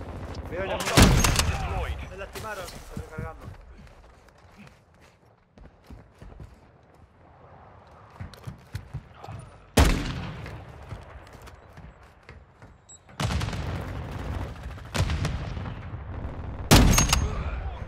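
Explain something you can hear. A rifle fires loud single shots that echo briefly.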